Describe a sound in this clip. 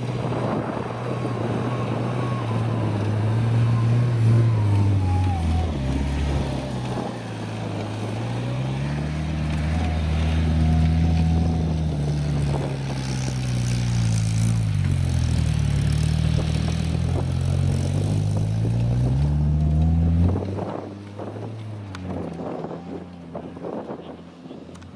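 Tyres churn and spin on loose dirt and grass.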